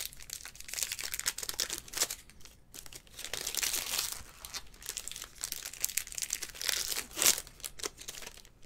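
Foil card wrappers crinkle and rustle in hands.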